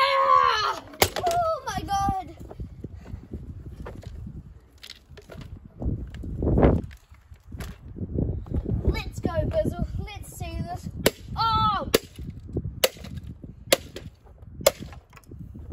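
A metal garden tool strikes hard ground with sharp clanks.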